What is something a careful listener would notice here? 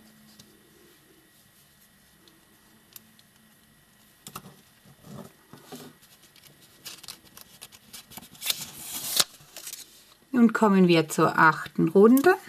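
Yarn rustles softly as a crochet hook works through it.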